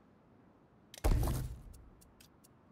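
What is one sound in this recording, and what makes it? A short game menu sound plays.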